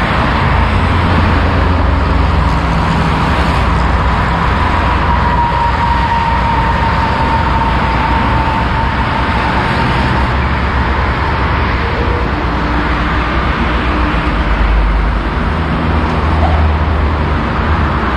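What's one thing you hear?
Heavy traffic roars steadily along a highway below.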